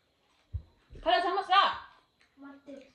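A young child calls out loudly in a high voice.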